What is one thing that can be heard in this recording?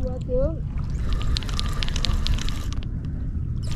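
A fishing reel clicks as line is wound in.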